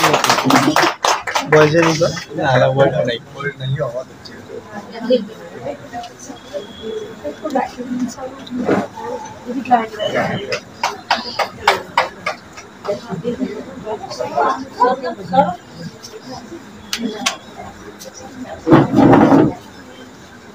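Women talk among themselves nearby.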